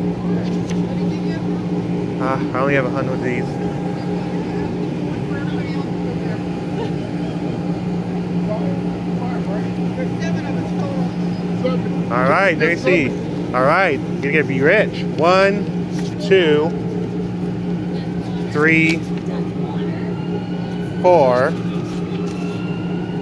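A blower fan hums steadily nearby.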